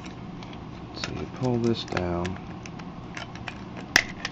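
Plastic parts of a toy click and rattle as fingers handle them.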